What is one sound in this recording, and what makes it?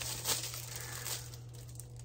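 Paper rustles in a woman's hands.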